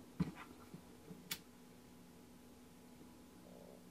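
A lighter clicks and sparks.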